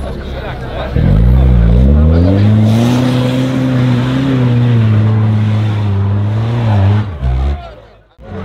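An off-road vehicle's engine revs loudly and strains.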